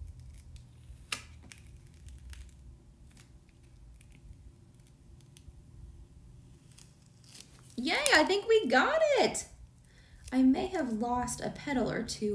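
A thin plastic sheet crinkles softly as it is handled.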